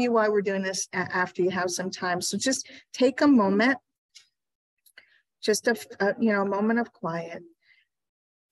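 A woman speaks calmly into a microphone, heard through an online call.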